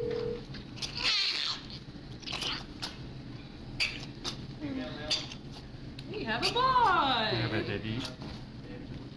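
A newborn baby cries out in short, wavering wails.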